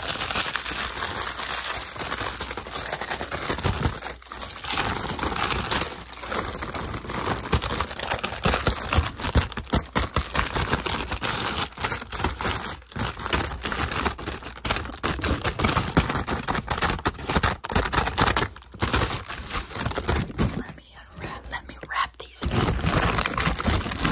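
Tissue paper crinkles and rustles close to a microphone.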